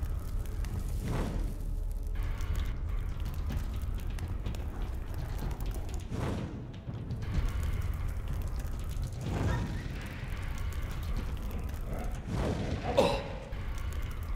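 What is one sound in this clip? Fire spells burst with a whooshing roar several times.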